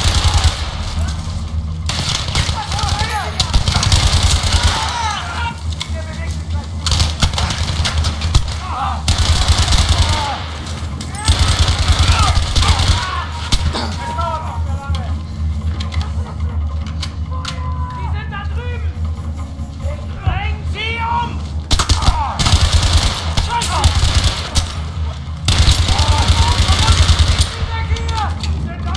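A rifle fires in rapid bursts of loud shots.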